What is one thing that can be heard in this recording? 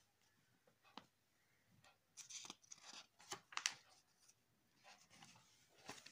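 Glossy magazine pages rustle and flip as a hand turns them.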